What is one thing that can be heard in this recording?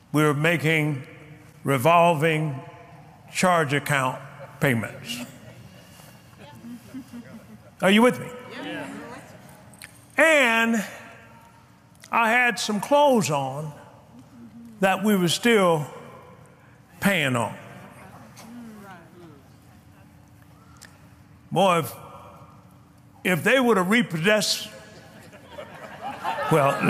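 A man preaches with animation through a microphone, in an echoing hall.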